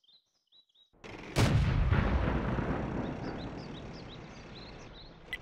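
A tank cannon fires with a loud boom that slowly rumbles away.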